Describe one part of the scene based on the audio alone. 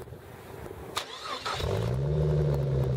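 A car engine cranks and starts.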